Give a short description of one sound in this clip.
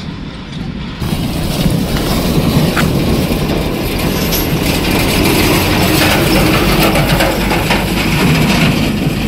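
A diesel dump truck drives past.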